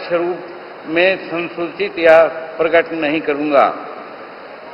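An elderly man reads out slowly through a microphone.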